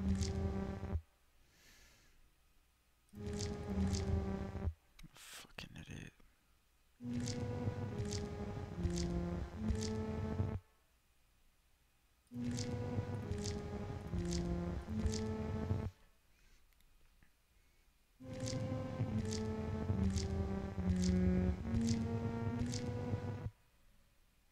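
An electronic keyboard plays a melody in short phrases, with pauses between them.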